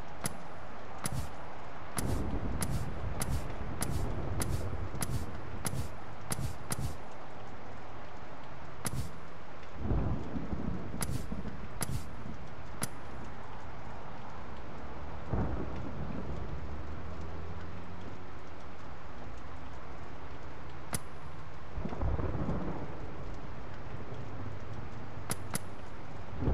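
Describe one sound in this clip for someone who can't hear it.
Short, sharp menu clicks tick in quick bursts, then now and again.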